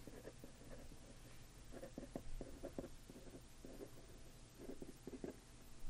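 A pen scratches on paper.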